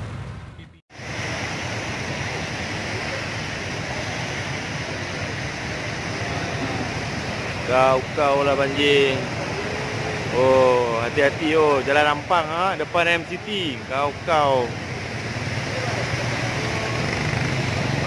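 Cars splash through deep floodwater on a road.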